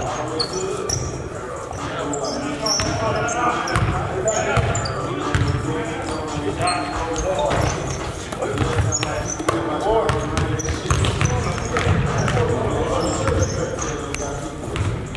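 A basketball bounces on a wooden floor with hollow thumps.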